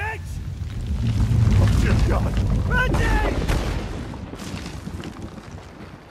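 A deep explosion booms and rumbles, then slowly fades.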